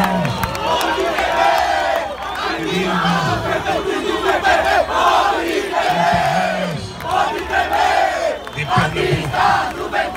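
A large crowd sings and chants loudly outdoors.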